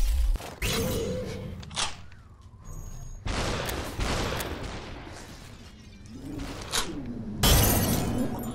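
Gunshots bang sharply, one at a time.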